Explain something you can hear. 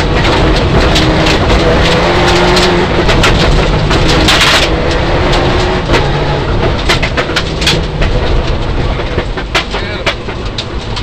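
Gravel rattles and pelts against the underside of a car.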